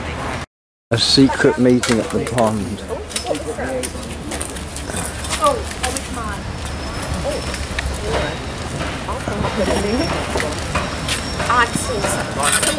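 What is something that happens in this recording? Several adults talk and chatter nearby outdoors.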